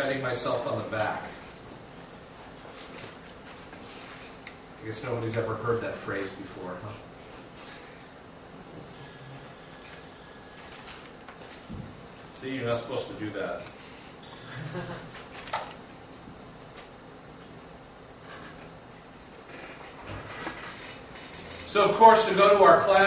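A middle-aged man speaks calmly in a room, pausing often.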